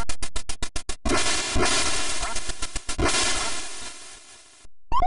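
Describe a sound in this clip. A retro video game plays a long crackling burst of electronic noise.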